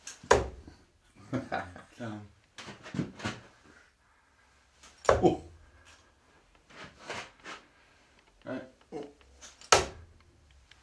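Darts thud sharply into a dartboard.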